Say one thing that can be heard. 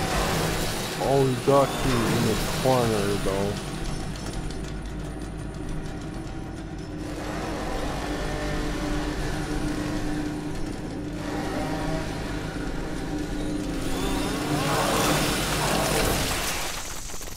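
A monstrous creature growls and groans up close.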